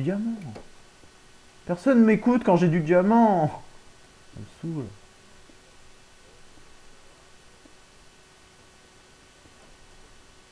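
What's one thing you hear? A pickaxe chips at stone blocks with repeated soft knocks.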